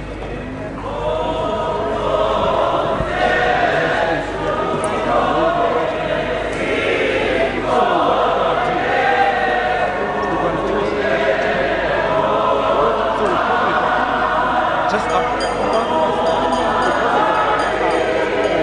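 A brass band plays a slow, steady tune.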